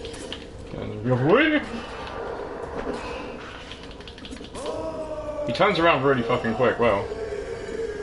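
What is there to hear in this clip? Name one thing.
A monster growls and roars loudly.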